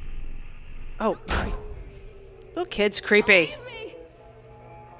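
A young man talks with animation into a headset microphone.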